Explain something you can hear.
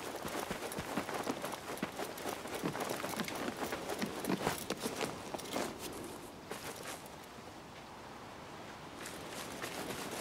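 Quick footsteps run over dirt and dry ground.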